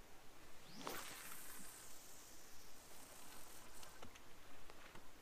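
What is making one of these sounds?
Fishing line whirs off a reel and fades.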